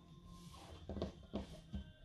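Fabric rustles as hands smooth it flat.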